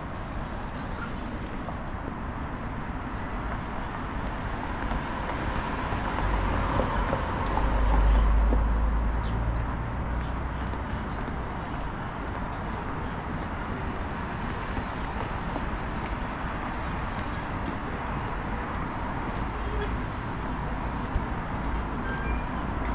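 Traffic hums steadily from a nearby road outdoors.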